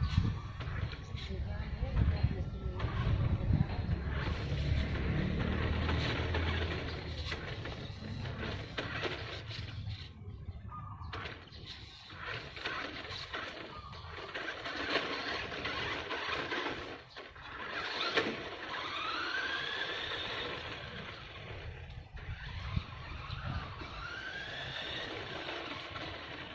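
Plastic tyres crunch and rumble over rough pavement.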